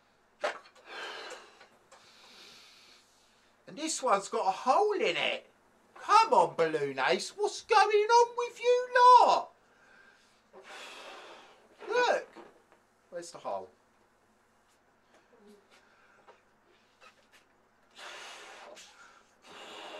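A man blows air into a balloon in long breaths.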